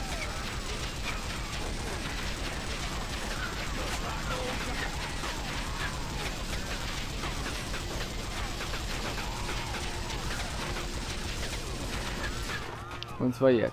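A machine gun fires in rapid, continuous bursts.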